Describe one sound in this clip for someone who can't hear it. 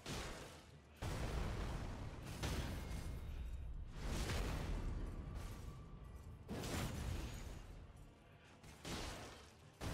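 Heavy blows land with deep booming impacts.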